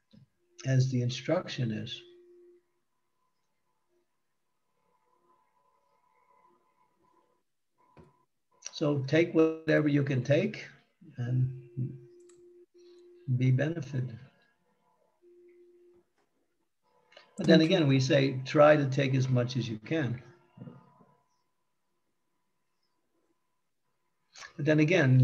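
An elderly man speaks calmly in short bursts over an online call.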